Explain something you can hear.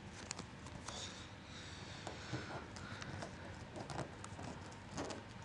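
Fingers press and crease paper against a hard table.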